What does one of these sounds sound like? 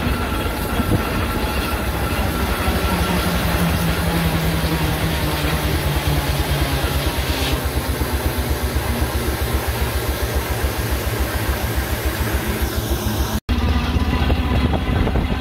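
A small steam engine chuffs in a quick, steady rhythm.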